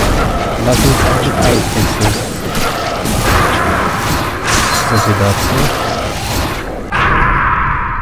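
Lightning crackles and booms loudly.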